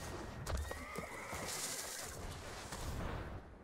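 A digital card game plays a magical whooshing effect.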